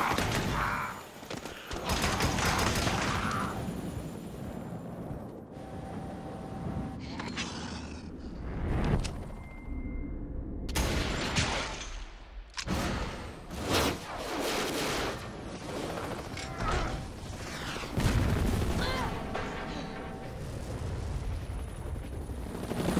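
A helicopter's rotor thumps and whirs.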